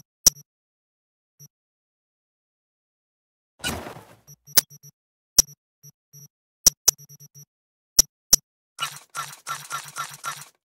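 Short electronic menu clicks and soft beeps sound at uneven intervals.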